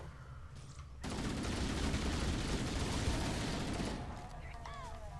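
An explosion roars and rumbles.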